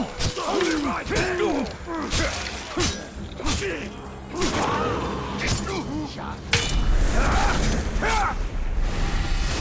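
Blades slash and strike in a fast fight.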